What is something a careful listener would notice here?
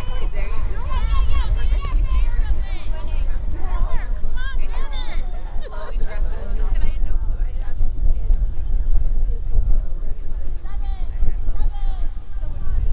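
Young women shout and call to each other across a field.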